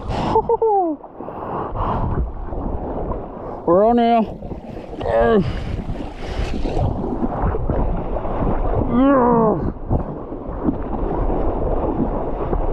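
Water splashes and laps against a paddleboard.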